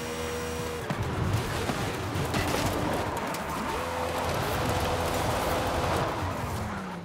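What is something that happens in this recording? Tyres skid and scrape over loose dirt.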